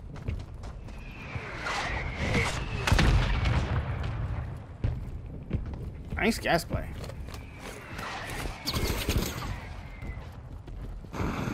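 A man talks with animation into a microphone.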